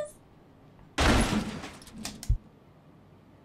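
A door opens and shuts with a thud.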